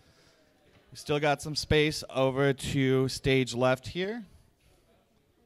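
A man speaks loudly and with animation through a microphone in a large hall.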